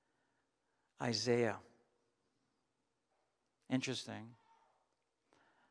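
A man speaks into a microphone in short, slow phrases with pauses.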